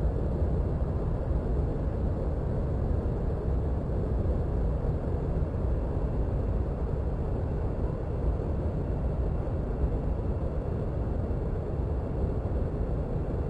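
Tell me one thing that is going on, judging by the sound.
A jet engine hums and rumbles steadily from close by.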